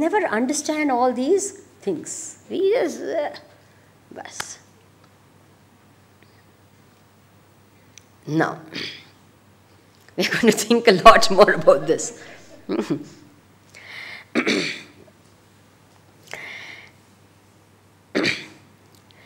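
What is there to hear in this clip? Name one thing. A middle-aged woman speaks calmly into a microphone, with pauses.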